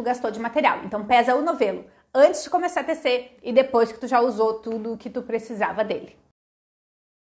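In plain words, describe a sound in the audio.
A woman talks with animation close to a microphone.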